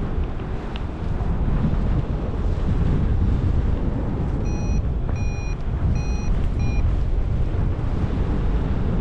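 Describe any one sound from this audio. Strong wind rushes and buffets loudly, as if outdoors high in the air.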